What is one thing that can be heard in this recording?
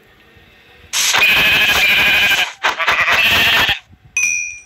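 A sheep bleats.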